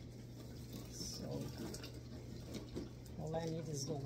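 Thick juice pours and splashes into a bowl.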